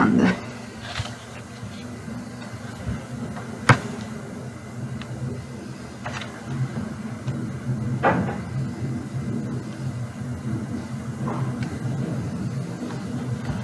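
Magazine pages rustle and flip as they are turned.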